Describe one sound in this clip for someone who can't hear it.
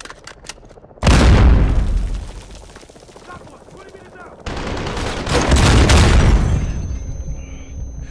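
Loud explosions boom and rumble.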